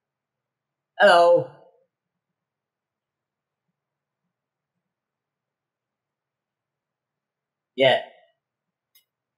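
A young man speaks briefly and softly into a close microphone.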